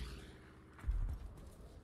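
A propeller plane roars past overhead.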